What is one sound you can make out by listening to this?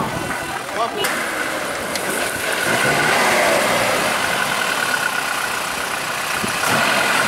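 An off-road 4x4 engine rumbles.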